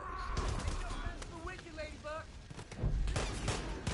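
A man speaks loudly and gruffly, close by.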